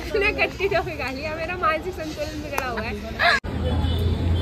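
A second young woman laughs close by.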